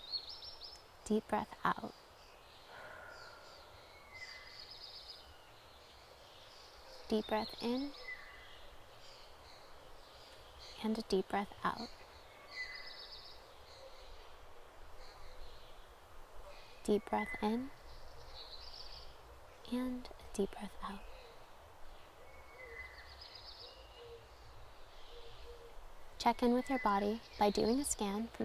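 A young woman speaks softly and calmly in short phrases with long pauses.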